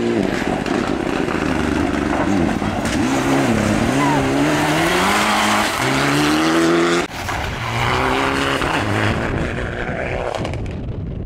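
A rally car engine roars loudly and changes pitch as the car speeds past on a gravel track.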